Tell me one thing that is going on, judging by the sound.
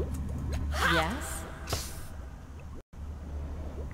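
A magical shimmer rings out.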